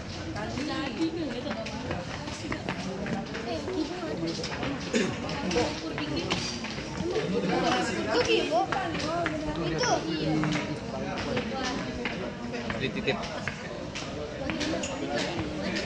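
Several men talk nearby in an echoing stairwell.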